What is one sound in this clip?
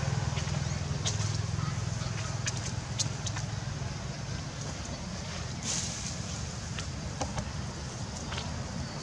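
A monkey's feet pad softly over dry, leaf-strewn ground.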